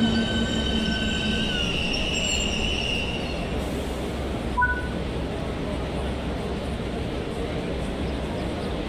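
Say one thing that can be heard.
A train hums low and steady while standing.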